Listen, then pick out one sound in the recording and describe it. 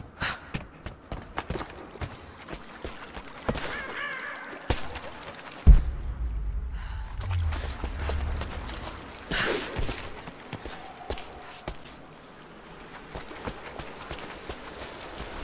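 Footsteps crunch over rocky ground.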